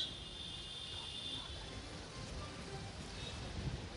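A crowd shouts and chants outdoors.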